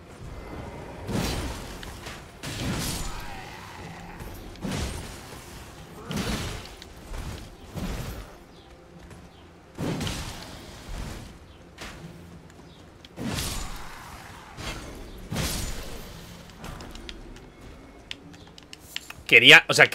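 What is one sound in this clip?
Heavy weapon swings whoosh and thud in a fight.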